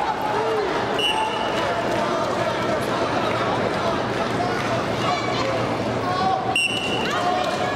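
A referee blows a short, shrill whistle.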